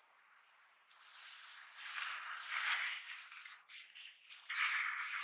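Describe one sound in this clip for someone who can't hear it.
A thin plastic sheet crinkles and rustles as it is peeled away.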